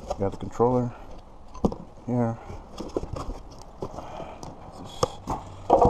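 Hands handle a cardboard box, its flaps scraping and rustling.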